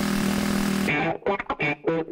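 A short cheerful jingle plays at the finish.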